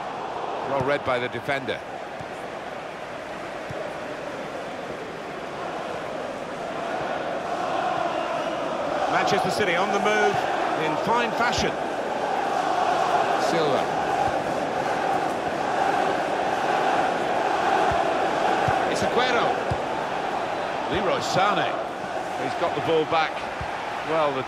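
A large crowd roars steadily in a big open stadium, swelling louder midway.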